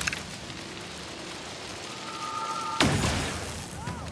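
A rifle fires a short burst of loud shots.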